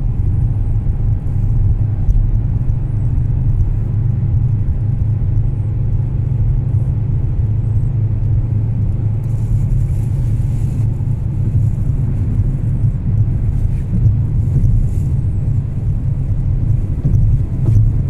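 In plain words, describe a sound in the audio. Tyres roll over smooth asphalt with a low rumble.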